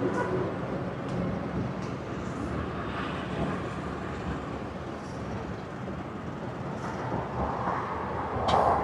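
Highway traffic hums faintly far below.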